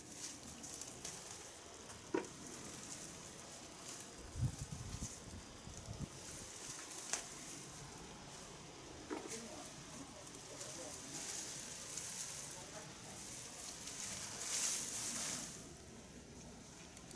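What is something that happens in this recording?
Leafy plant stalks rustle and swish as they are pulled and moved.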